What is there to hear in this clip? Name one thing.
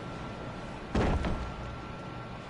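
A heavy thump sounds as a body lands on wooden planks.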